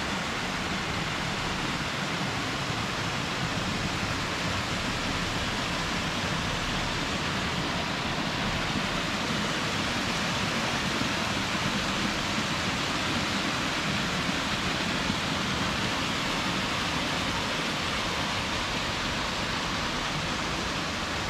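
A waterfall splashes steadily down rocks.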